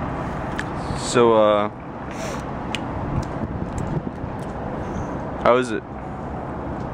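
A young man slurps loudly through a straw.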